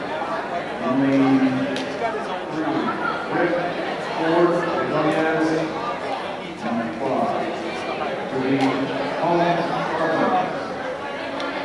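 Young people chant loudly together.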